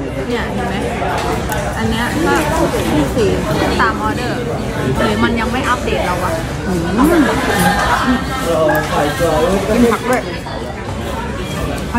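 Chopsticks and a spoon clink against bowls.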